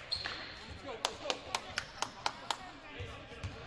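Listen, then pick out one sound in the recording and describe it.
A basketball bounces rapidly on a wooden floor.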